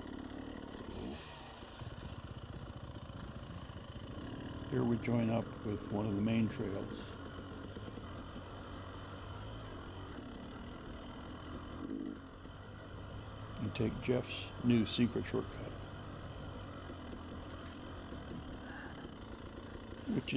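A two-stroke enduro dirt bike engine runs while riding along a dirt trail.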